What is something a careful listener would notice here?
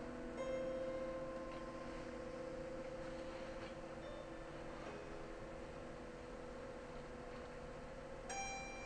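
Piano strings plucked and struck inside the instrument ring out with long, resonant tones.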